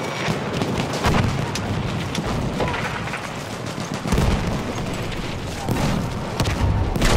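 Explosions thud and rumble nearby.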